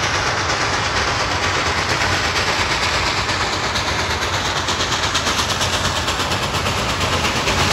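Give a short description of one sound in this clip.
A steam locomotive chuffs rapidly and grows louder as it approaches.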